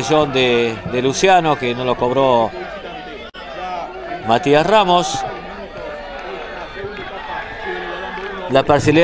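A large crowd murmurs and chants outdoors.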